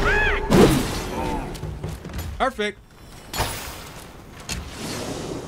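Sword blows strike with heavy thuds and whooshes.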